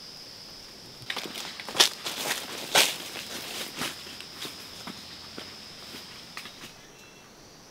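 Leaves and branches rustle as someone pushes through dense undergrowth.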